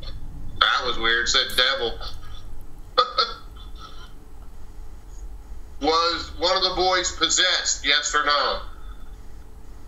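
A man speaks over an online call with animation.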